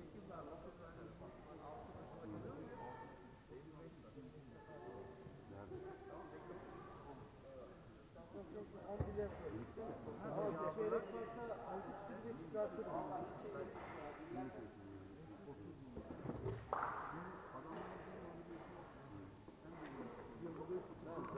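Men talk calmly nearby in a large echoing hall.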